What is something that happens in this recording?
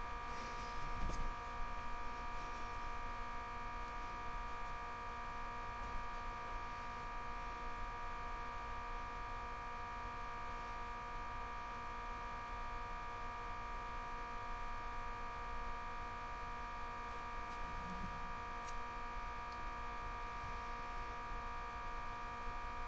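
Muffled sound plays from a television nearby.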